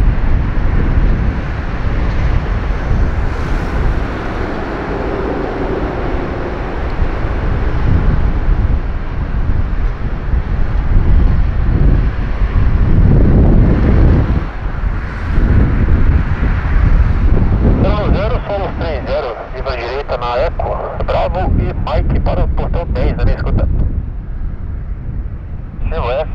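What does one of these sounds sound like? A jet engine rumbles steadily in the distance.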